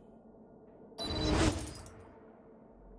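A game menu opens with a loud whoosh.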